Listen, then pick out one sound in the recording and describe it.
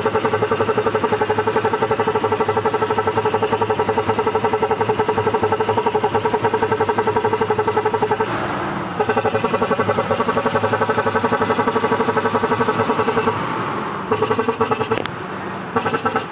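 An engine idles close by with a fast, steady chugging.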